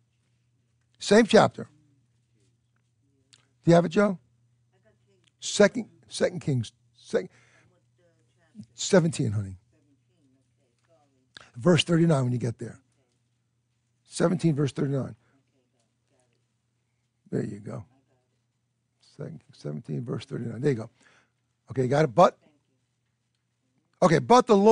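An older man speaks slowly and calmly through a microphone, with pauses.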